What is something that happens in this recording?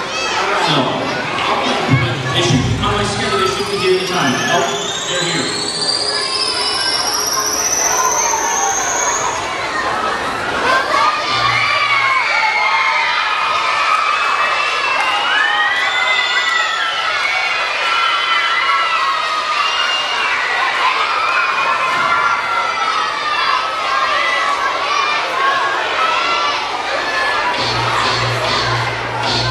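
A crowd of young people cheers and shouts loudly in a large echoing hall.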